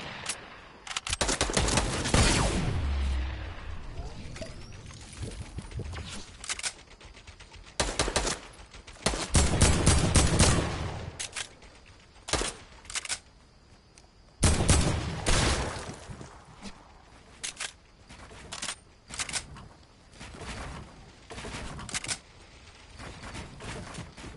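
Loud game explosions boom and rumble.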